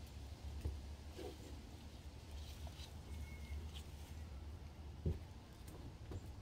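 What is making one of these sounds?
A small dog laps and munches food from a bowl.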